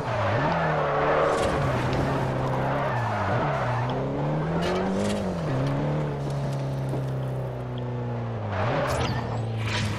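Tyres screech on tarmac as a car slides through bends.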